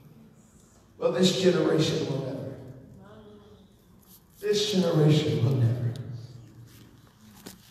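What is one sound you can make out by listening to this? A man sings loudly through a microphone in a large echoing hall.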